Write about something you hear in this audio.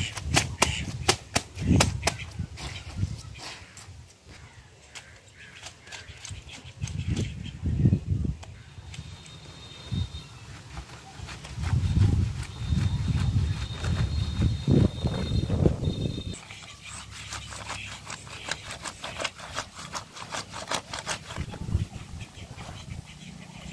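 A woman scrubs wet cloth with quick, rough rubbing strokes.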